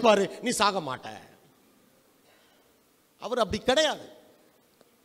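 A man speaks forcefully into a microphone, heard through a loudspeaker in an echoing room.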